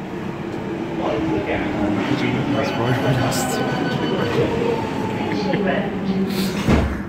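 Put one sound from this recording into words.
Another subway train rolls past on the next track.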